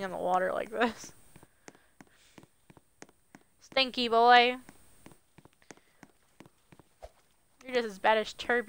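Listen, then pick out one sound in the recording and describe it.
Footsteps tap quickly on wooden boards.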